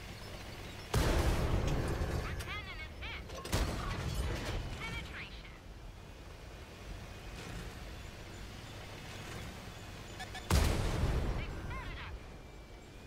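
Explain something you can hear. Tank cannons fire loud booming shots that echo away.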